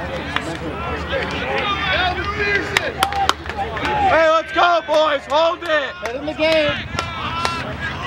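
Young men shout and call out to each other on a field.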